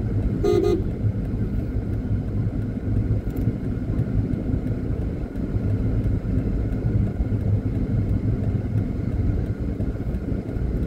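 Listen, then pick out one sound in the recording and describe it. A car engine rumbles low and steady while driving along a road.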